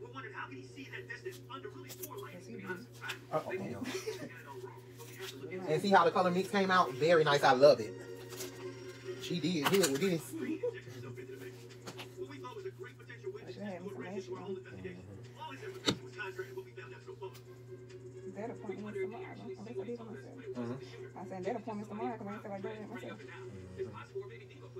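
Hands rustle and brush through hair close by.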